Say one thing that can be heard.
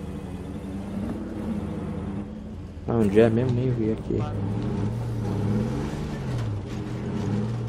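A van engine hums steadily as the van drives slowly.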